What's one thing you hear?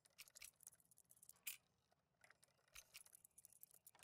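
A lock pick clicks and scrapes inside a metal lock.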